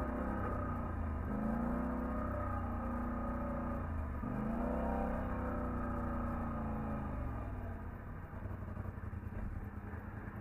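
An all-terrain vehicle engine revs up and down close by.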